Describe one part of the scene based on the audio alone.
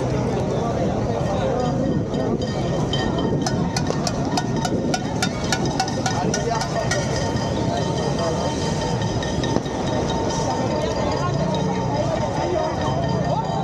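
A large crowd murmurs and chatters outdoors.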